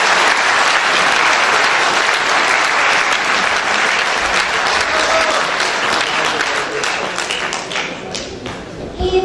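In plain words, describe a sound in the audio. A large audience applauds loudly in a big hall.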